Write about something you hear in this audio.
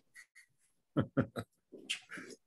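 A middle-aged man laughs over an online call.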